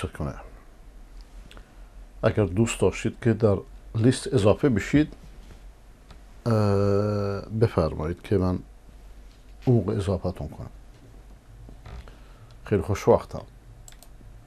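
A middle-aged man speaks calmly and with pauses into a close microphone.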